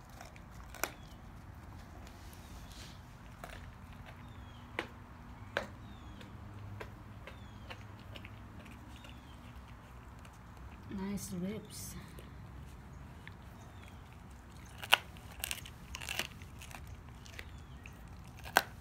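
A dog gnaws and crunches on a bone close by.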